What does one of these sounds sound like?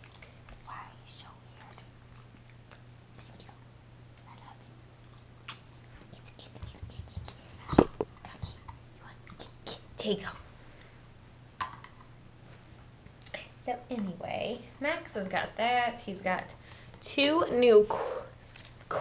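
A young woman speaks softly and affectionately close by.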